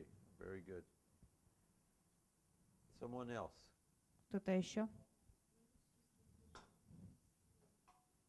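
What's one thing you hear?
An older man speaks slowly and with emphasis into a microphone, with pauses between phrases.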